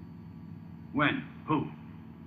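A man speaks gruffly nearby.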